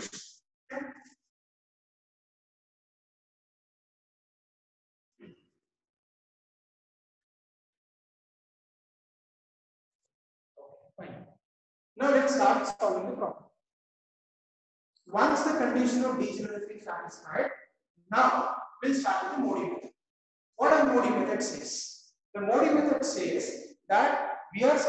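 A man lectures, speaking close by.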